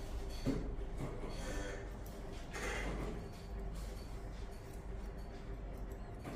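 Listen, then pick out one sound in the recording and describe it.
Scissors snip through hair close by.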